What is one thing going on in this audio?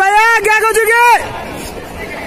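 A young man lets out a long, loud shout.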